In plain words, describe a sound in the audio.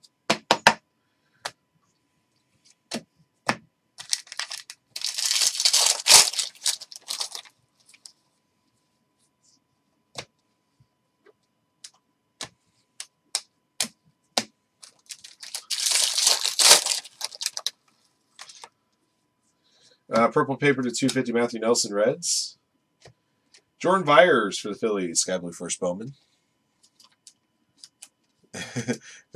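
Trading cards click and slide against each other.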